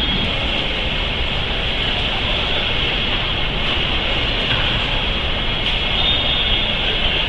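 A jet engine roars and whines steadily as an aircraft taxis.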